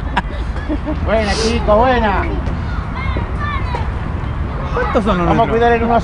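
Young children shout and call out loudly nearby, outdoors.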